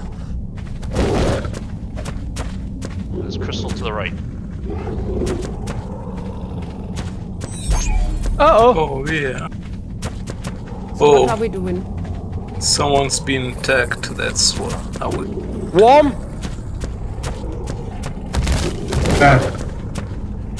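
Heavy footsteps thud steadily on hard ground.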